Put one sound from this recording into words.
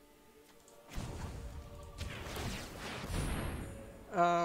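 A soft magical whoosh sounds as a card is played.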